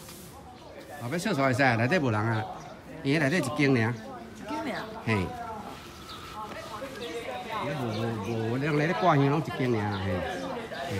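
A man talks loudly close by.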